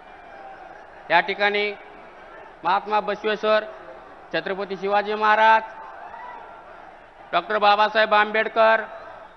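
A man shouts loudly in short bursts over a loudspeaker.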